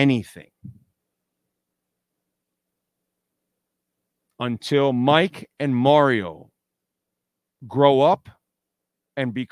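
A middle-aged man talks with animation into a close microphone, pausing between phrases.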